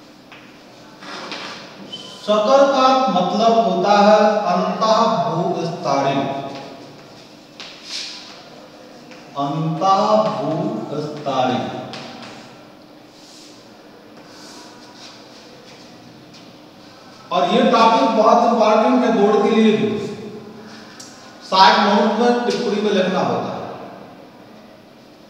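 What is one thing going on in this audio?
A man speaks calmly and clearly nearby in a slightly echoing room.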